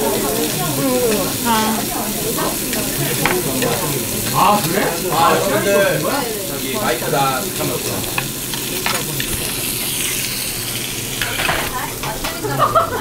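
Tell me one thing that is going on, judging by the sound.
Young people chatter and talk over one another nearby.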